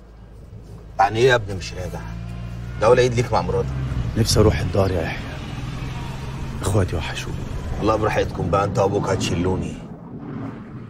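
A man speaks tensely outdoors, close by.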